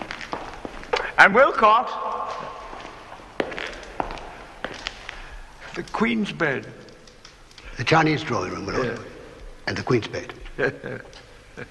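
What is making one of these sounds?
An older man speaks calmly.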